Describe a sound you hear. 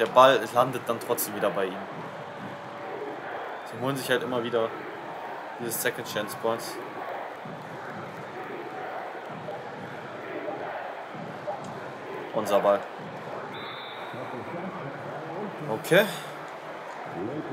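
Sneakers squeak on a basketball court.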